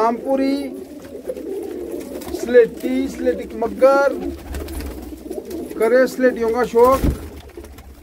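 Pigeons coo and murmur close by.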